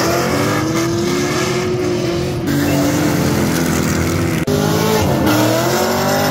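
Car engines roar loudly at high revs.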